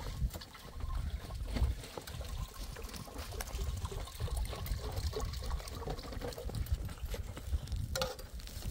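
A metal kettle clinks and rattles.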